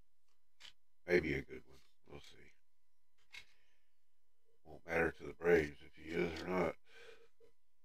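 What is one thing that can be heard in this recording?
An older man talks with animation into a microphone.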